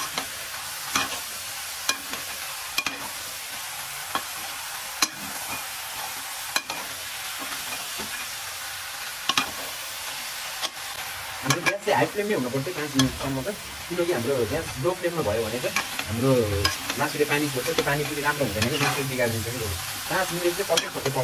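A metal ladle scrapes and clinks against a steel pot while stirring chicken pieces.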